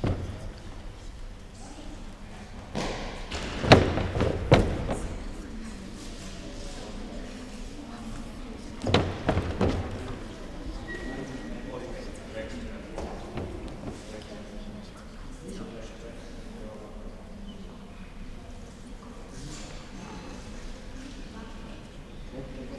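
Girls chatter quietly in the background.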